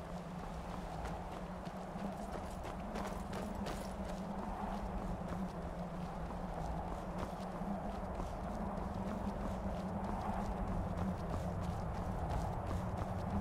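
Wind blows steadily in a snowstorm.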